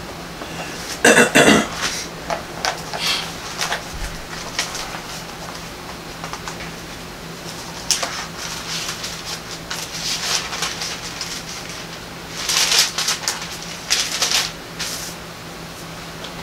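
An elderly man speaks slowly and quietly, close by.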